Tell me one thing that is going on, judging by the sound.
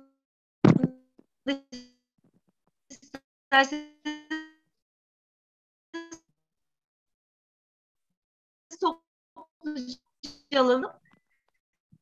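An older woman speaks calmly with pauses over an online call.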